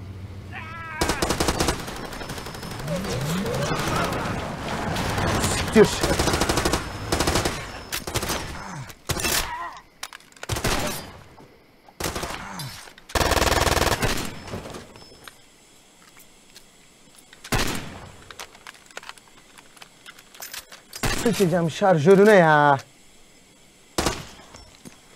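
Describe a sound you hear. Gunshots bang in sharp bursts.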